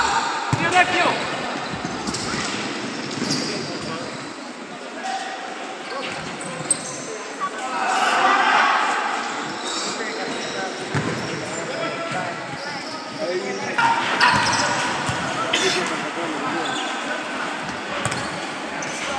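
Sneakers squeak on an indoor court in a large echoing hall.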